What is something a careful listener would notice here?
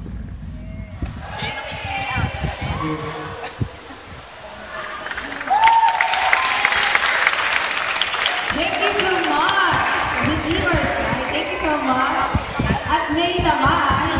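Pop music plays loudly through loudspeakers in a large echoing hall.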